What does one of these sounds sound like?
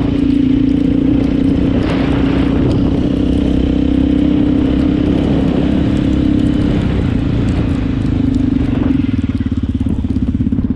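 Tyres crunch over snow.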